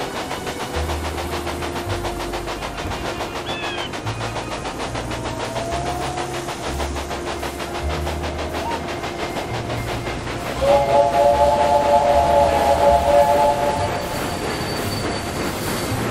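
A steam locomotive chuffs rapidly and steadily.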